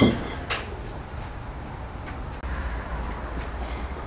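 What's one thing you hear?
A hand trowel digs into soil.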